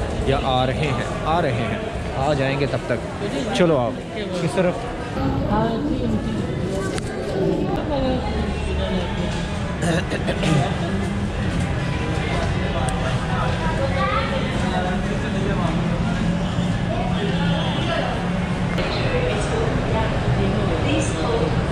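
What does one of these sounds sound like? Crowd chatter echoes in a large hall.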